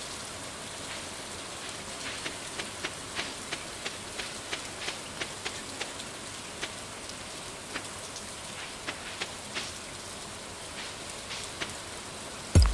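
Soft footsteps patter quickly on dirt.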